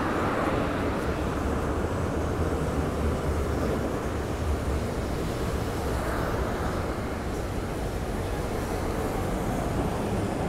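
A tram rumbles past.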